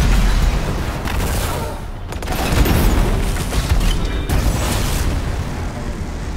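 Explosions boom and rumble heavily.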